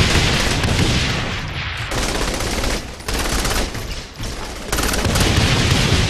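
Rapid gunfire bursts out in quick cracks.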